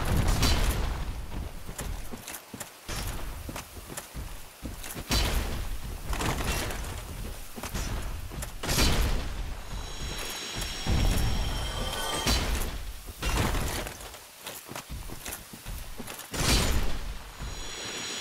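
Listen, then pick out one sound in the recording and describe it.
Heavy crystal creatures stomp and slam the ground with deep booming thuds.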